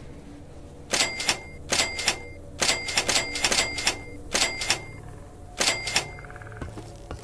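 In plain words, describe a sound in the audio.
Interface clicks tick in quick bursts.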